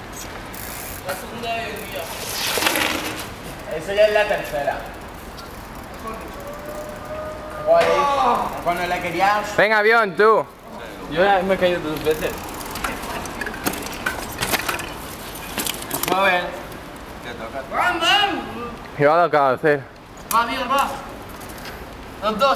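Young men talk and shout with animation close by, outdoors.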